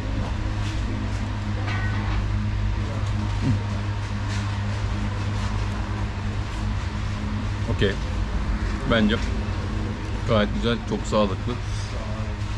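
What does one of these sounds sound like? A spoon scrapes and clinks against a plate.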